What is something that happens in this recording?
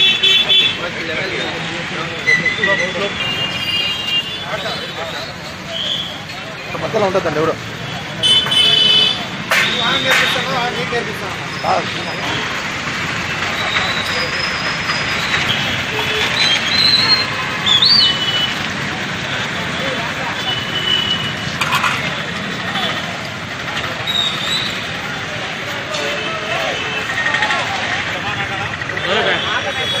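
A crowd of men chatter outdoors.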